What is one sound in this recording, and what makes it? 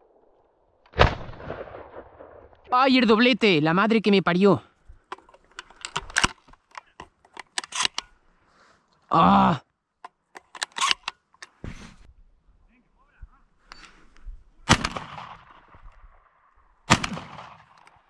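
A shotgun fires outdoors.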